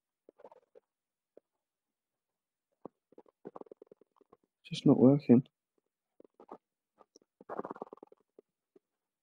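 A young man speaks quietly and casually, close by.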